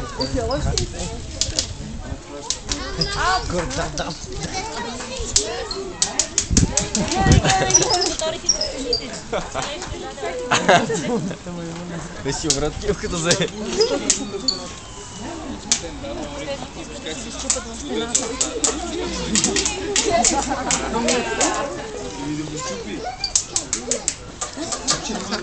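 Several people talk nearby.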